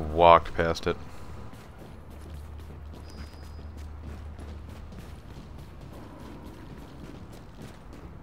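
Footsteps thud on metal stairs.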